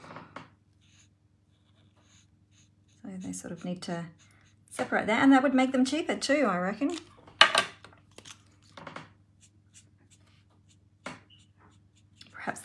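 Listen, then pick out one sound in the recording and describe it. A felt-tip marker scratches softly on paper.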